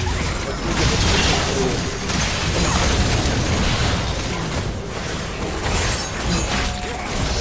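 Fantasy game spell effects and weapon clashes crash and whoosh in quick succession.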